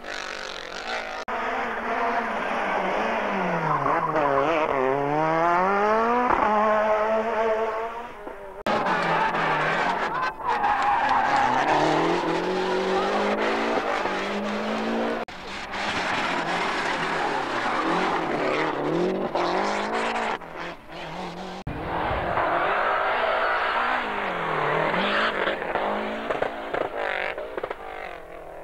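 A rally car engine roars and revs hard, rising and falling in pitch as the car speeds past.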